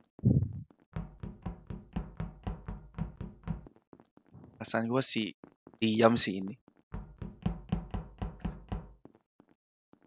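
Quick footsteps tap along a hard floor.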